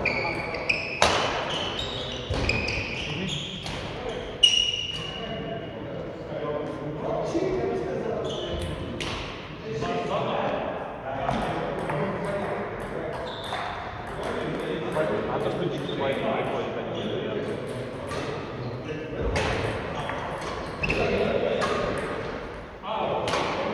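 Badminton rackets strike shuttlecocks with sharp pops.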